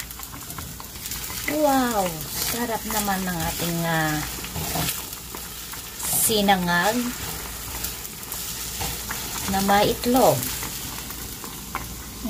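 A spatula scrapes and stirs rice in a pan.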